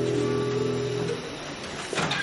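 Several acoustic guitars play a chord that rings out and fades.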